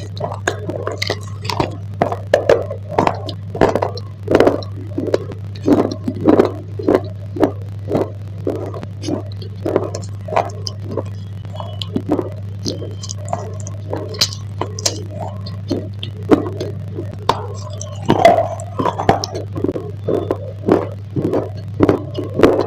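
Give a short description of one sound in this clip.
A person chews a crunchy snack close to a microphone.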